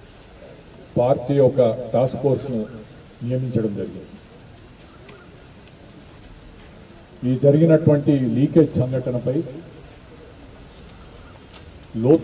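A middle-aged man speaks through a microphone and loudspeaker outdoors, in bursts with pauses.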